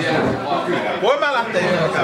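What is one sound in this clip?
A man laughs nearby.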